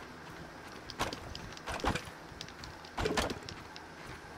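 An axe chops into a thick plant stalk with dull thuds.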